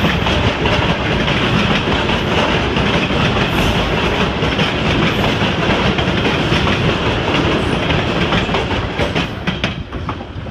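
A freight train rumbles and clatters past close by, then fades.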